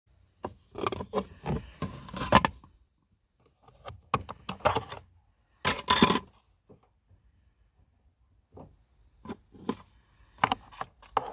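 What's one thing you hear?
A plastic latch clicks and rattles as a hand works it.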